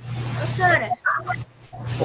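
A boy speaks over an online call.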